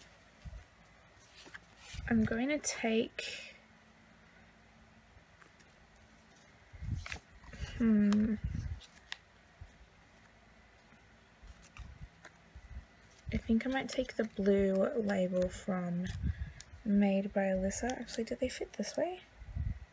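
Sticker sheets rustle and slide against paper.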